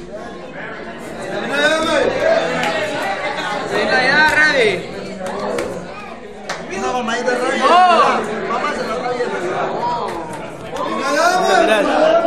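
A crowd of men and women talk and shout excitedly nearby.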